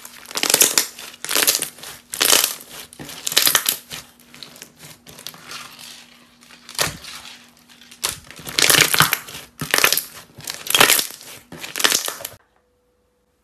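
Sticky slime crackles and pops as hands squeeze and stretch it.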